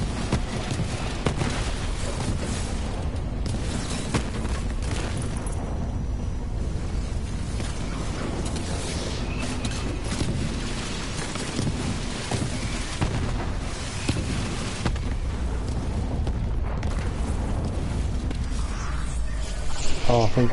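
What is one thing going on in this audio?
Gunfire rattles rapidly and loudly.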